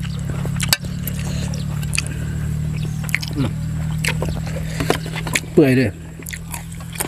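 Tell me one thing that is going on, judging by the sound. A woman slurps noodles loudly up close.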